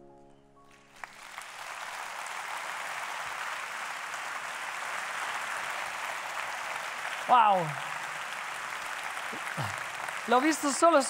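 A large crowd cheers and applauds in a vast echoing hall.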